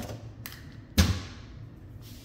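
A cabinet door bangs.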